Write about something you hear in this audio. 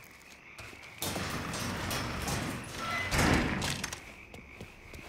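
A metal roller door rattles loudly as it rolls up.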